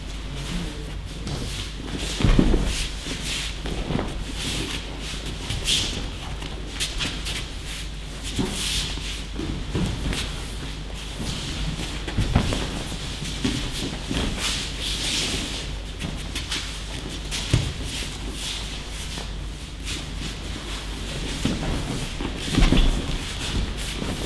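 Bare feet shuffle and slide on a mat.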